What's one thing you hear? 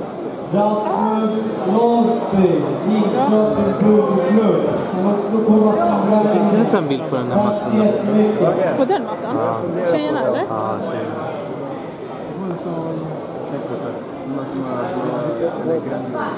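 Men and women in a crowd shout and call out with animation, echoing in a large hall.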